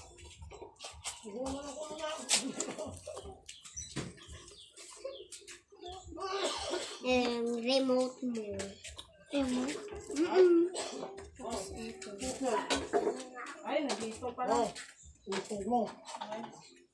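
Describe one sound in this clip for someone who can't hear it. Young girls talk and shout excitedly close by.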